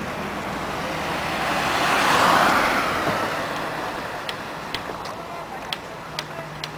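A small car drives past close by and fades away.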